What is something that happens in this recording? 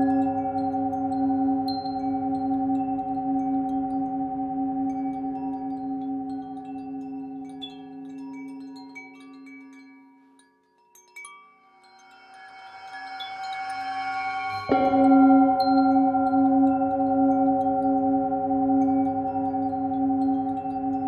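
A metal singing bowl rings with a steady, humming tone that fades and swells again.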